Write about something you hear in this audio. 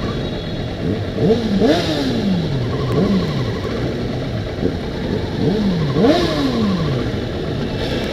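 A motorcycle engine revs up and down sharply.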